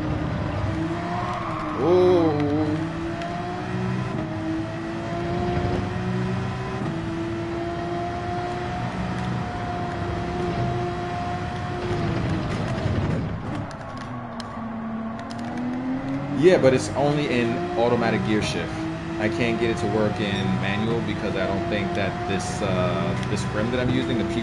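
A racing car engine roars, climbing in pitch through each gear and dropping as it slows for corners.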